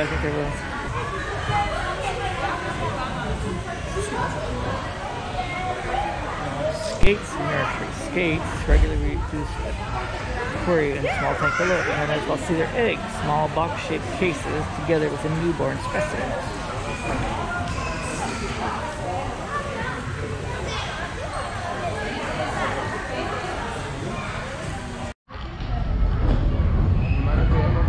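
A crowd of adults and children chatters in an echoing hall.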